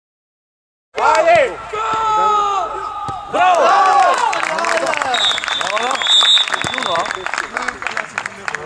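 Young people close by talk and cheer loudly.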